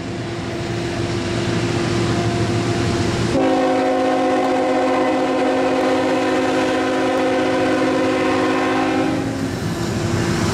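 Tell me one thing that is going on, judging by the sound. A train horn blows loud and long.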